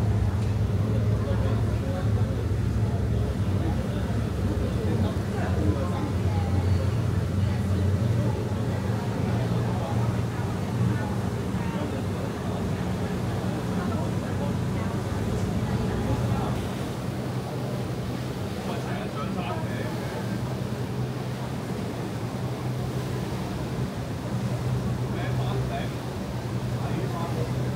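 Water splashes and rushes against a ferry's hull.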